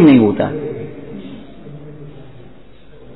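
An elderly man speaks calmly into a microphone, close by.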